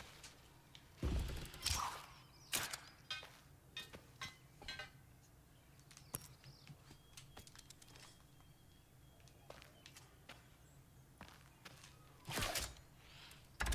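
Hands grip and knock against wooden planks while climbing.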